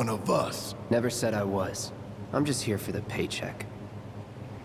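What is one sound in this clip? A young man answers calmly in a low voice.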